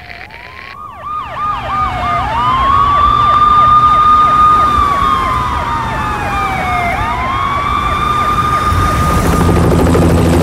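Police sirens wail, rising and falling.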